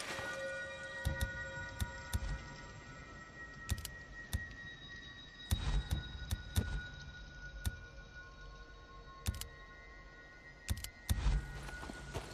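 Soft interface clicks and whooshes sound as a menu opens and items are picked.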